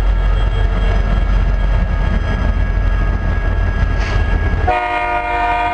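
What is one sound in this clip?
Diesel locomotive engines rumble loudly as they pass close by.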